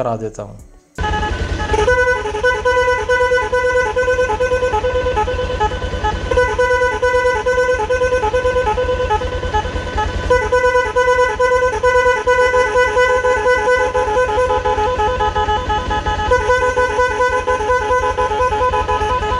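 A motorcycle horn blares loudly and steadily.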